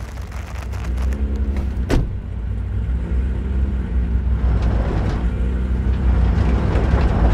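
A car engine rumbles low and steady.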